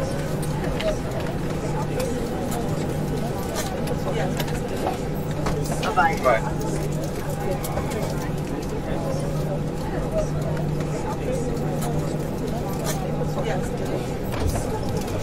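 Passengers' footsteps tap along a walkway.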